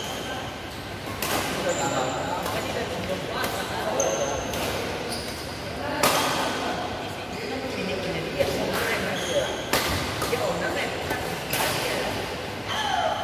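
Rackets strike a shuttlecock in quick rallies, echoing in a large hall.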